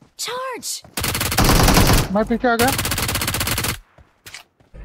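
Gunshots rattle in rapid bursts.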